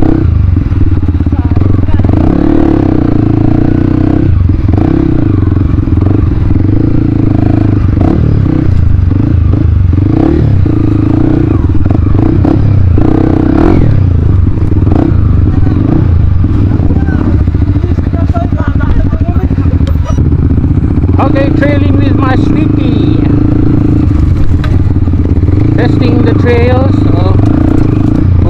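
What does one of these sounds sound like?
A dirt bike engine rumbles steadily close by.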